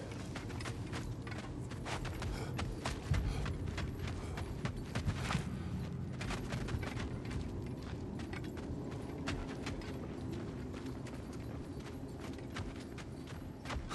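Heavy footsteps crunch over dirt and stone.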